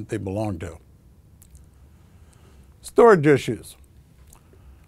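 An older man speaks calmly into a close microphone, with pauses.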